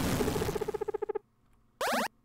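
A bright electronic victory jingle plays in quick pulsing notes.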